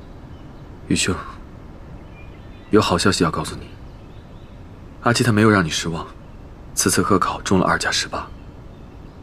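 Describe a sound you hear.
A young man speaks calmly and warmly in short phrases, close by.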